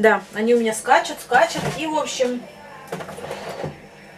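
A fridge door opens.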